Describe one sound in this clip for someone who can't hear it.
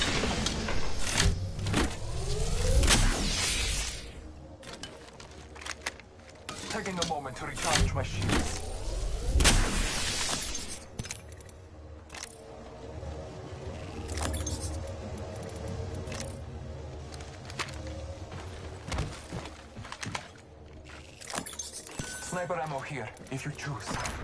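Menu selections click softly.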